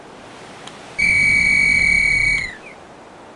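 A loud electronic warning tone sounds for a moment.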